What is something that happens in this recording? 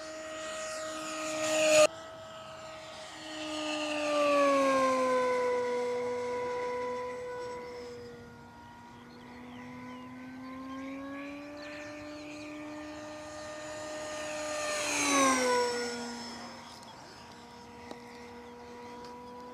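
A model jet plane's engine whines overhead, rising and falling in pitch as it swoops past.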